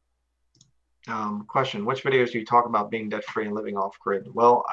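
A man speaks calmly into a microphone, as if on an online call.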